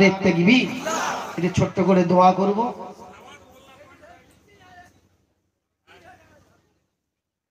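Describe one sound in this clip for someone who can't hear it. A man chants loudly and with feeling into a microphone, heard through loudspeakers.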